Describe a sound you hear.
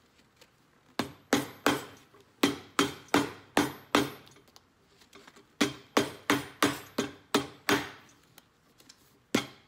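A hammer taps sharply on a leather sole in quick bursts of blows.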